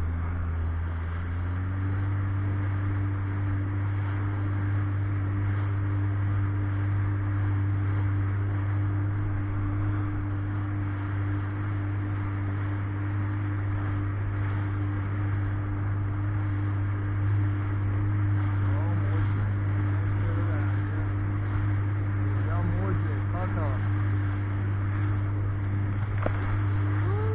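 Water splashes and rushes against a jet ski's hull.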